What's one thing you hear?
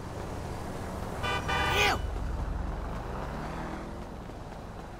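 A car engine drives past.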